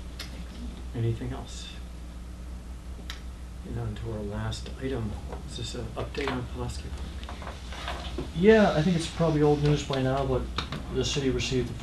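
A man speaks calmly at a moderate distance.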